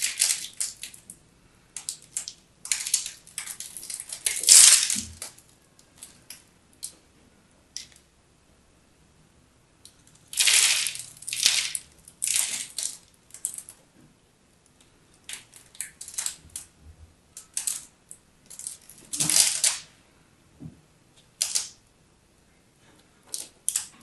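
A knife blade scrapes and cuts crisply through soap, close by.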